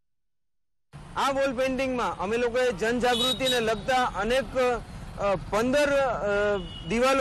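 A man speaks steadily into a close microphone.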